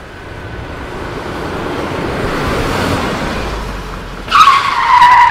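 A car engine roars as it approaches at speed.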